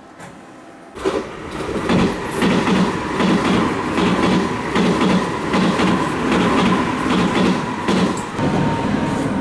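Another train rushes past close by with a loud roar and rattle.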